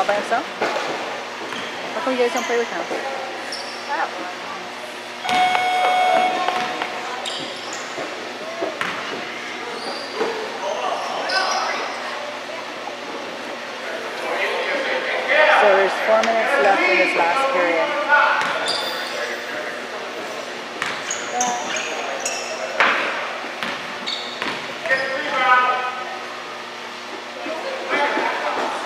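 Spectators chatter and call out nearby in a large echoing hall.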